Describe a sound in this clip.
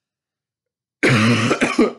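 A young man sneezes sharply.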